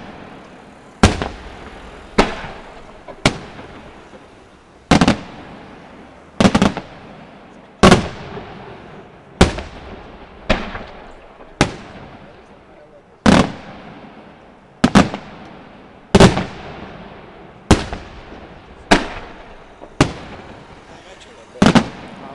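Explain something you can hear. Fireworks burst with loud booms that echo away.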